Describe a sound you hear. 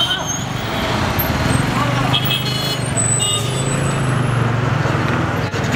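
A heavy truck engine rumbles past.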